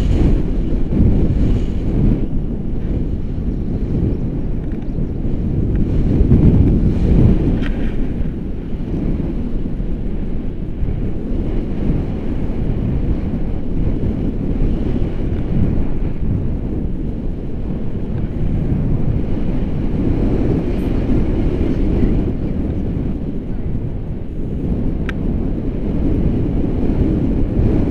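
A young woman speaks with the wind in the background.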